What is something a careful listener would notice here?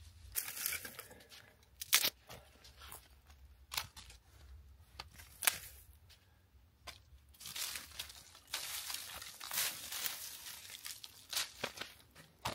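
Dry brush crackles and snaps as a man handles it.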